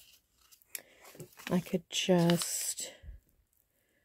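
Pages of a paper booklet rustle.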